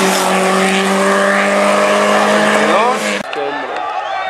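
A rally car engine roars loudly as the car speeds past.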